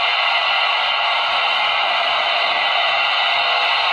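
A fiery streak whooshes through the air.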